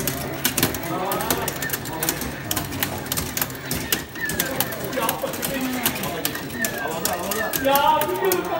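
An arcade fighting game plays punching and kicking sound effects with rapid hits.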